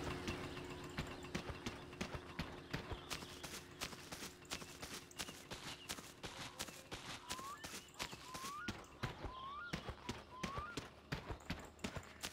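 Footsteps crunch steadily on a dirt path outdoors.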